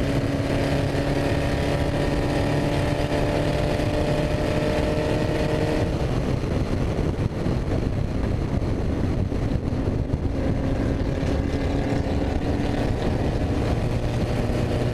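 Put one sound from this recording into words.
A race car engine roars loudly and close, its pitch dropping as the gears shift.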